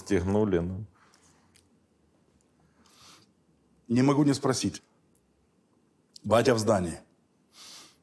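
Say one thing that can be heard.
A man speaks calmly in short phrases, close to a microphone.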